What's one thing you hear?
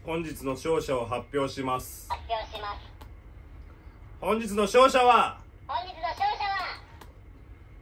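A young man announces something loudly and with animation, close by.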